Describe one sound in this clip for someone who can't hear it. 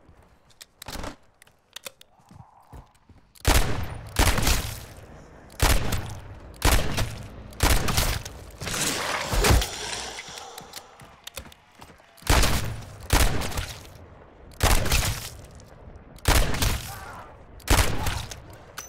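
Gunshots fire in single loud bangs, echoing outdoors.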